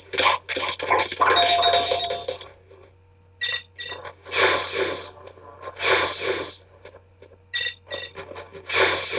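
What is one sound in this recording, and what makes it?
Electronic game sound effects chime and beep.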